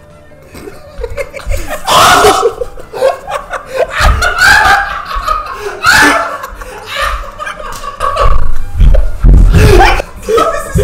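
Several young men laugh and cheer close by.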